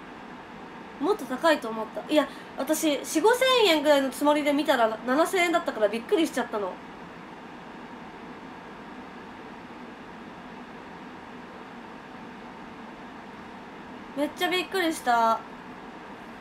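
A young woman speaks close to a microphone in a light, chatty voice.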